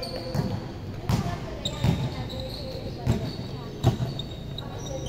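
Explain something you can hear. A basketball thuds on a hard court in an echoing hall.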